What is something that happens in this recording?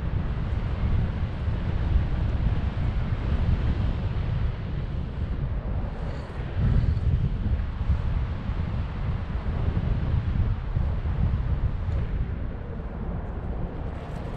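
Strong wind rushes and buffets loudly against a microphone outdoors.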